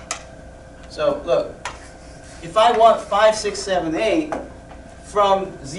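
A man speaks in a lecturing tone, in short bursts with pauses.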